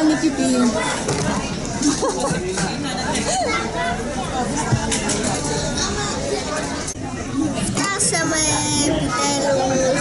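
People chatter quietly in the background.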